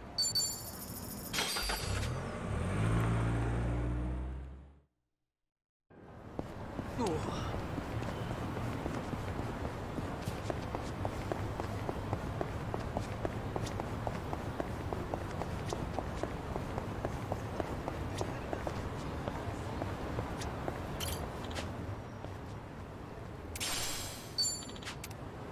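A short bright chime rings from a game menu.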